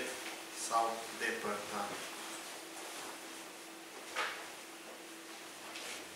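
A middle-aged man speaks slowly and calmly into a microphone.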